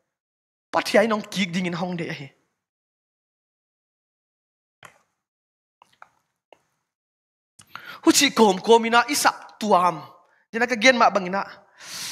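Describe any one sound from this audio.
A young man preaches with feeling into a close microphone, pausing between phrases.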